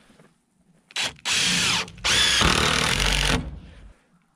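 A cordless drill whirs, driving screws into wood.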